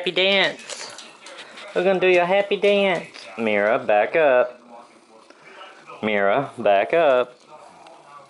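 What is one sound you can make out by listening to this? A dog whines and yelps loudly in high, wavering cries.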